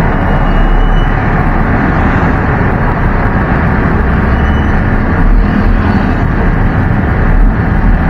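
A vehicle engine rumbles loudly from close by.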